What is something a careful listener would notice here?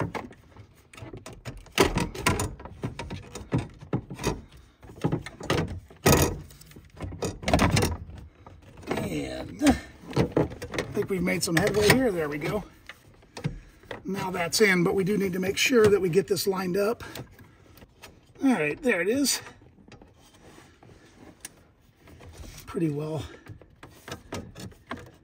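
Hard plastic cases knock and click as hands shift them about.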